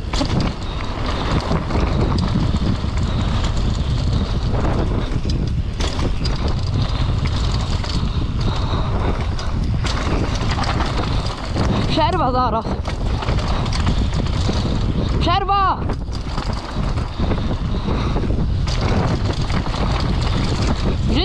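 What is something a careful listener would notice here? Bike tyres rumble and crunch over a rough dirt trail.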